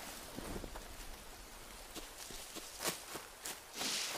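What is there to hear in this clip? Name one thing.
Leafy plants rustle as they are brushed aside.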